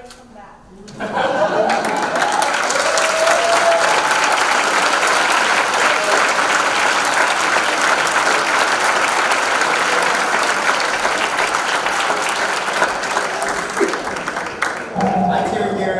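A large audience claps loudly in a hall.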